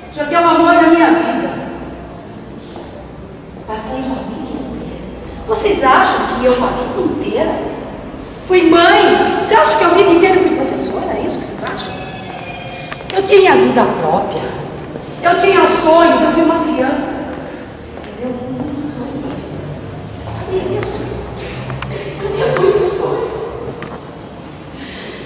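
A woman sings loudly and with feeling in a large echoing hall.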